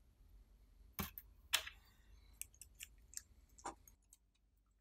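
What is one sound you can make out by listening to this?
Small plastic parts click and rattle in handling.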